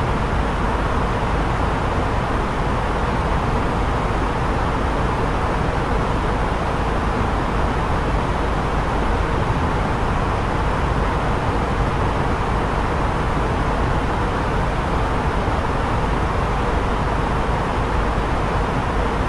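Jet engines and rushing air roar steadily.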